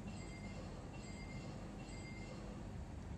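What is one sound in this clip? Short electronic beeps chime from a video game menu.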